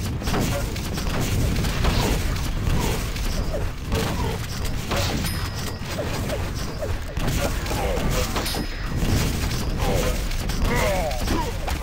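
Video game weapons fire rapidly.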